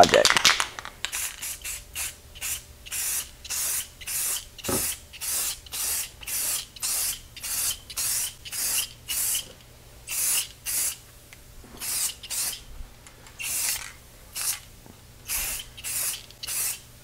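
A spray can hisses in short, quick bursts.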